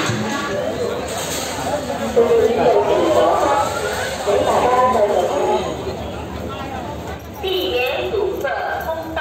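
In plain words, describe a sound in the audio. A crowd of people murmurs and chatters.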